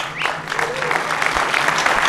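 A woman claps her hands close by.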